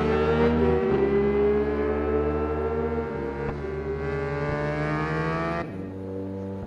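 Several motorcycles roar past together.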